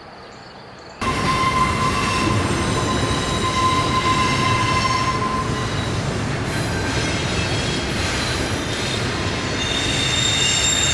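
A freight train rumbles past nearby.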